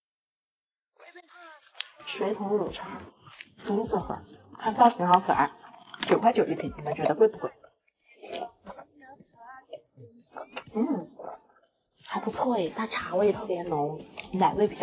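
A young woman talks animatedly close to a microphone.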